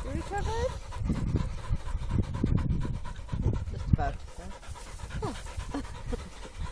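A dog pants rapidly close by.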